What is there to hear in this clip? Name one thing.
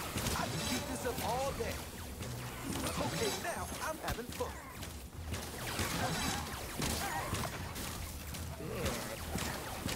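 Creatures shriek and growl as they are hit.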